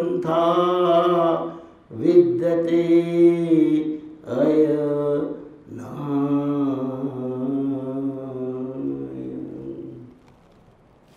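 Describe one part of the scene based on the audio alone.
An elderly man sings slowly through a microphone.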